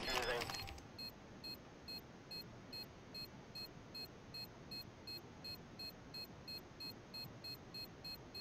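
A bomb beeps at a steady, even pace.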